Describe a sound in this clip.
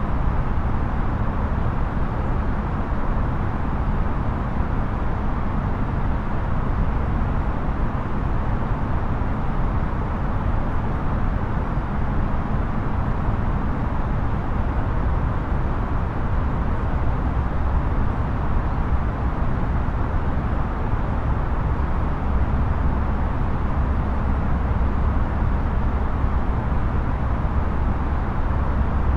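A jet airliner's engines drone steadily in the cockpit.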